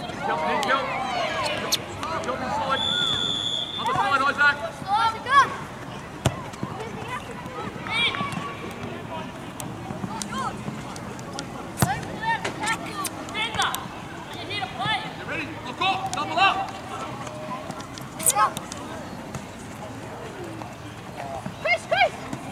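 Young players shout and call to each other across an open outdoor pitch.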